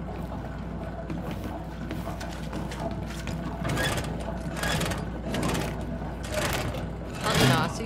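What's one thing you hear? A metal valve wheel creaks and clanks as it turns.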